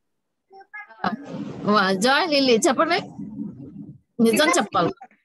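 A young girl speaks with animation over an online call.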